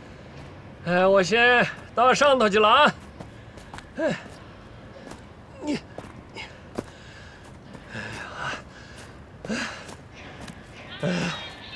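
Footsteps crunch on loose dirt.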